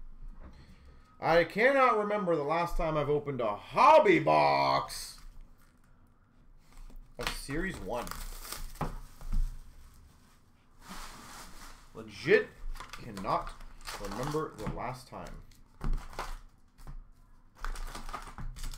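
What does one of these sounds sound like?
Cardboard boxes rustle and knock as they are handled.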